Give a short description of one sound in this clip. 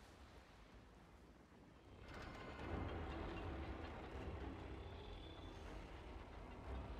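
Wind roars through a storm.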